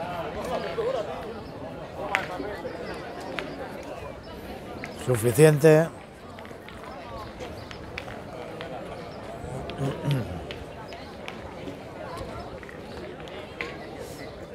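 Men talk in the background outdoors.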